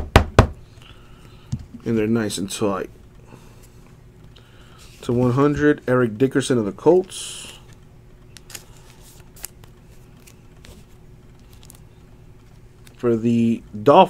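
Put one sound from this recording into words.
Cardboard cards slide and tap softly against each other.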